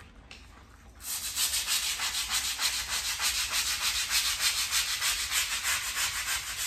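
A brush scrubs briskly back and forth on tile grout.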